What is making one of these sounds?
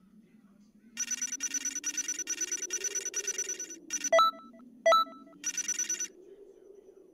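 A game's score counter ticks rapidly.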